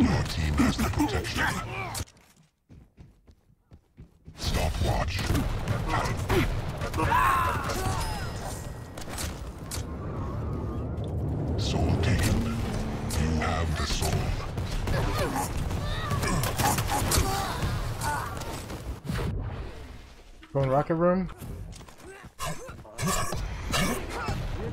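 Gunfire and explosions crackle and boom.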